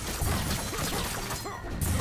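An icy blast whooshes and crackles.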